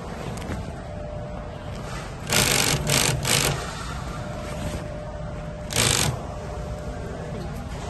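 Stiff fabric rustles as it is pulled and folded.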